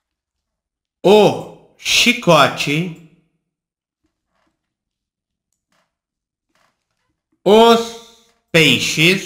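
A man speaks calmly and closely into a microphone, in short bursts.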